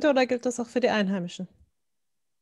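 A man speaks with animation in an online call.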